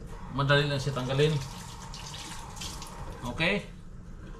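Water runs briefly from a tap into a sink.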